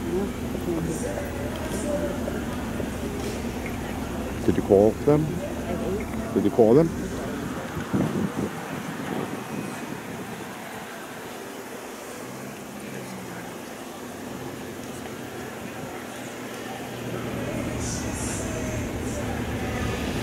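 Men and women talk and call out nearby outdoors.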